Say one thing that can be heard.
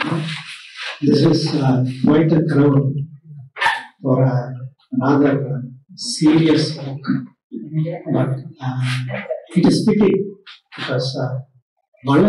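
A middle-aged man speaks calmly into a microphone through a loudspeaker.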